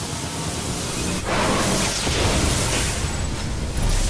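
Electricity crackles and bursts loudly.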